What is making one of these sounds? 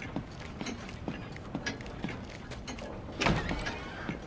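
Heavy footsteps thud on creaking wooden boards.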